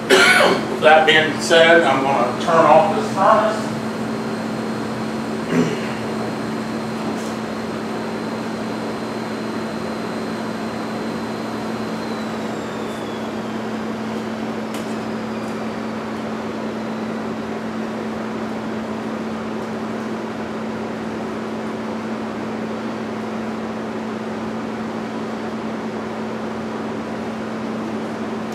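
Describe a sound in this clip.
A steady low hum of machinery runs throughout.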